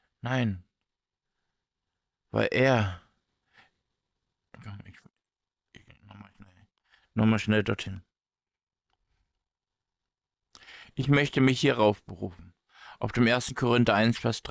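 A man speaks calmly and in pauses through a microphone.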